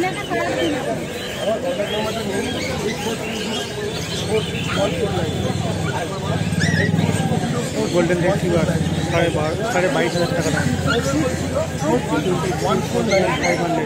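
Several men and women talk nearby in a busy crowd.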